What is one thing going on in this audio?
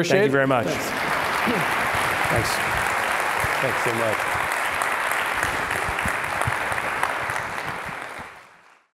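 An audience applauds steadily in a large hall, then the applause fades away.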